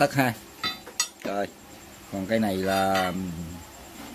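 A metal rod clanks down onto a hard surface.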